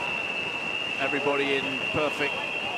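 A man speaks loudly over the wind, heard through a close microphone.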